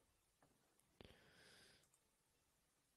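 A man exhales sharply close to a microphone.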